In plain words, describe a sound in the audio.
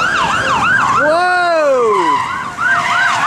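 Car tyres squeal on asphalt as a car spins out.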